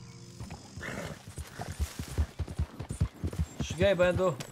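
A horse's hooves thud rapidly on the ground.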